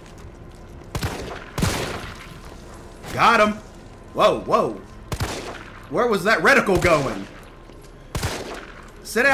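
Gunshots crack sharply several times.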